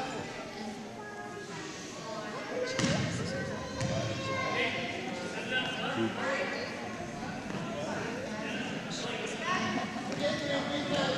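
Young girls chatter and call out in a large echoing gym.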